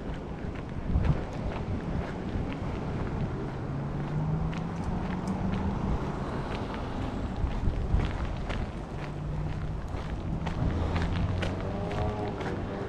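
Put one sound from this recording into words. Footsteps walk steadily along a concrete pavement outdoors.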